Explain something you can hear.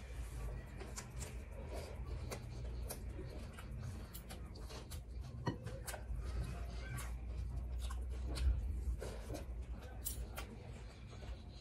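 A young woman chews food noisily with her mouth close to a microphone.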